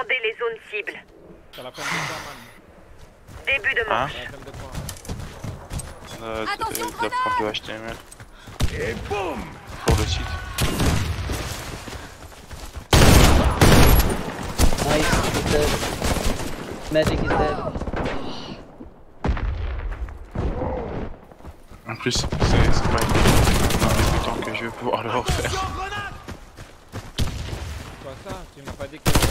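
A man talks with animation close to a microphone.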